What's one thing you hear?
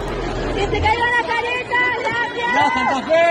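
A young man shouts into a microphone over a loudspeaker.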